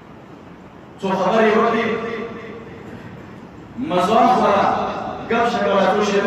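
A man speaks with feeling into a microphone, heard through loudspeakers in an echoing room.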